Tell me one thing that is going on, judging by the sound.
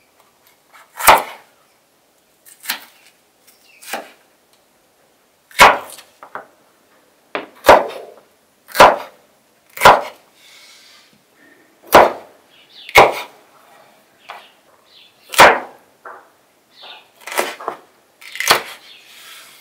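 A kitchen knife cuts through a bell pepper and knocks onto a wooden cutting board.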